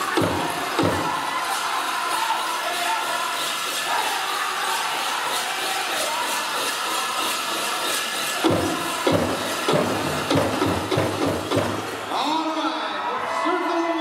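Bells on dancers' outfits jingle in rhythm.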